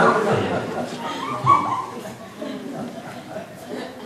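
A man's hands and knees shuffle across a wooden stage.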